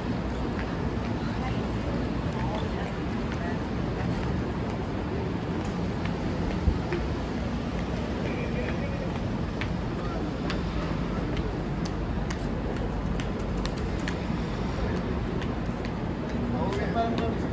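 Footsteps of people walking on a pavement pass close by.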